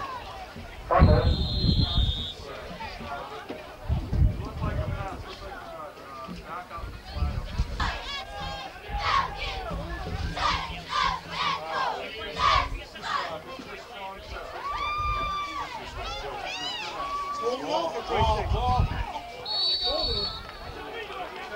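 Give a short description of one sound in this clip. A referee's whistle blows sharply, twice.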